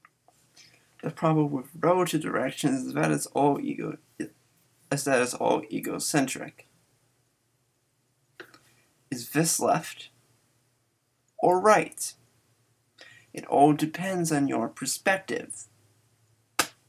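A young man talks calmly and close by, in short bursts with pauses.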